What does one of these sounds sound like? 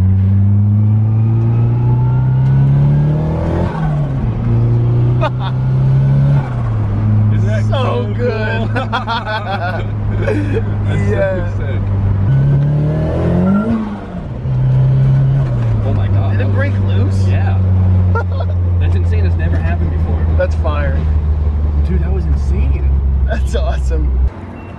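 A car engine hums loudly and revs up and down as the car shifts gears.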